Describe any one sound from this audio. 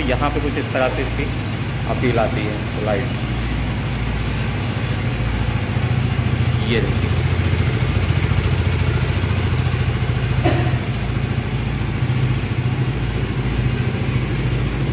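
A motorcycle engine idles with a steady, low, throbbing rumble.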